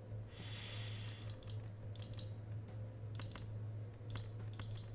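Cards click and chime as they are picked in a game.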